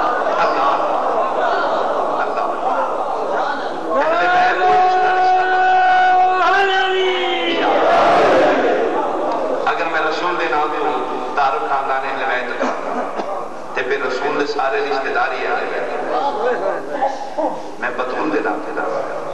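A man chants with feeling into a microphone, his voice carried over loudspeakers.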